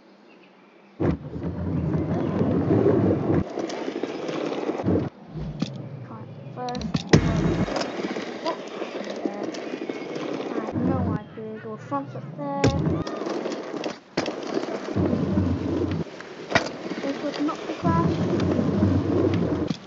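Small scooter wheels roll and rumble over hard ground.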